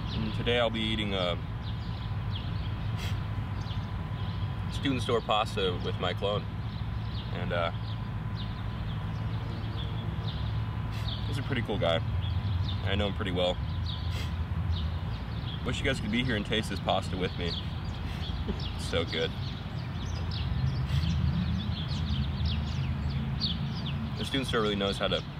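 A young man speaks briefly and casually, close by.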